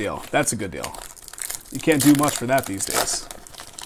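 A foil card wrapper crinkles and tears as hands open it.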